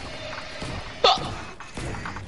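A pickaxe swings and strikes with sharp thwacks.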